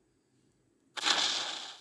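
A cartoon explosion bursts in a video game.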